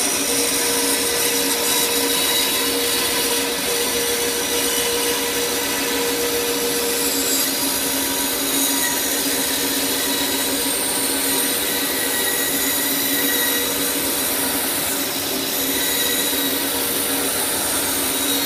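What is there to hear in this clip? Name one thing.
A band saw runs with a steady whine.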